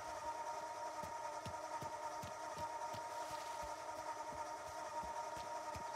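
Footsteps tap on the ground.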